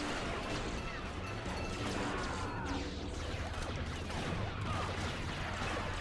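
A lightsaber hums and swings.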